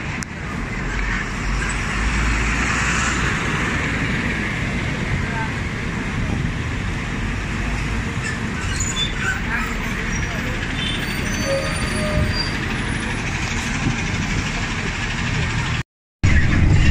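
A bus engine rumbles and hums as the bus pulls past nearby outdoors.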